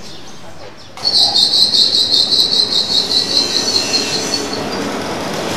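A machine rattles rapidly and harshly for a few seconds after starting.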